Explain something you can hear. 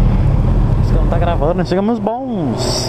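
A motorcycle engine revs up and down sharply.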